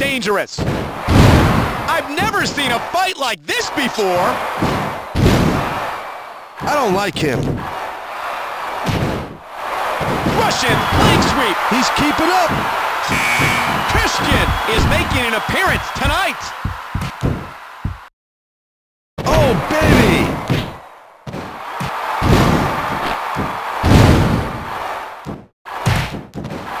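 Heavy thuds of bodies slamming onto a wrestling ring mat ring out again and again.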